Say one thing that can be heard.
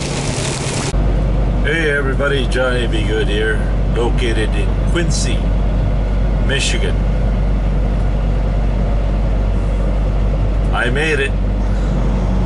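A truck engine hums low and steadily.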